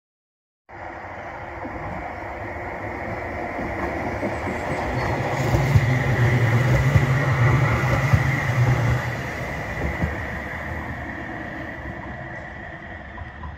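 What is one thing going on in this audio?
A tram's electric motor whines steadily as it passes.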